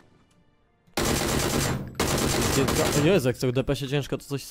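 An automatic rifle fires rapid bursts in an echoing tunnel.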